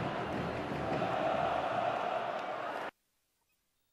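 A large stadium crowd roars loudly.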